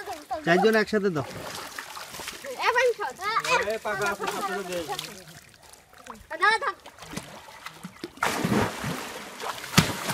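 Water splashes as boys wade and swim.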